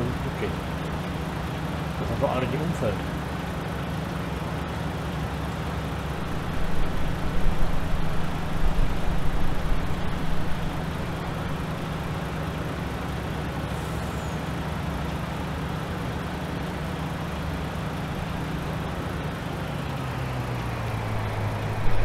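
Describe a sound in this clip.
A harvester engine hums steadily.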